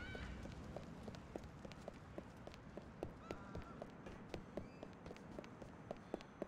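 Quick footsteps run on hard pavement.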